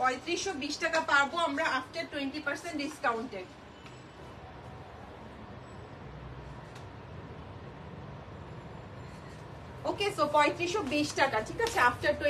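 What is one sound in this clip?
A young woman talks to the listener with animation, close to the microphone.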